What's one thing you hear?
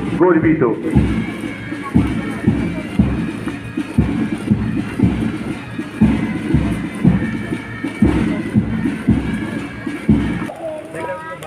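Boots stamp in step as a squad marches.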